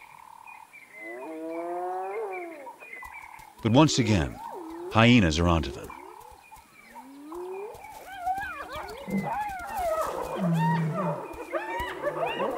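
Hyenas whoop and cackle nearby.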